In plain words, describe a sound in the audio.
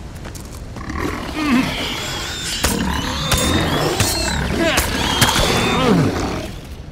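Swords clash and swing in a fight.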